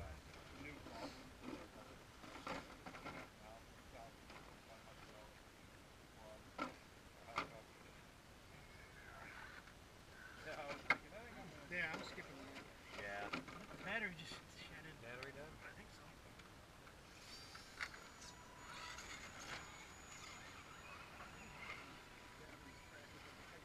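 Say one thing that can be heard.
A small toy truck's electric motor whines as it climbs over rock.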